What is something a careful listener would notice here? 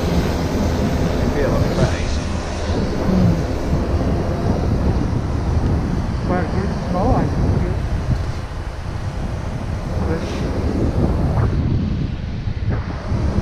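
Wind blusters steadily against the microphone outdoors.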